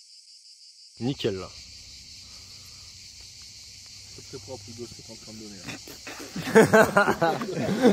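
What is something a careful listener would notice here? A man speaks close by, casually.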